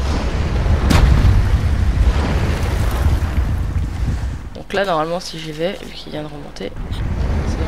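Wind blows steadily in the cold open air.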